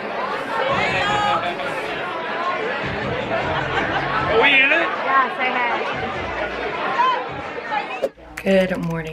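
A crowd of young people cheer and shout excitedly at close range.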